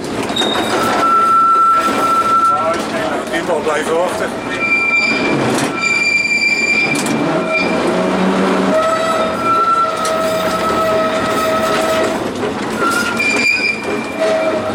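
Tram wheels squeal on a tight curve.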